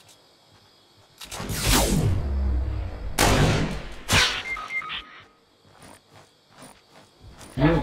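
Footsteps pad quickly through grass.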